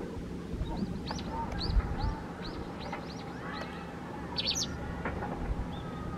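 A small bird chirps in short, high calls.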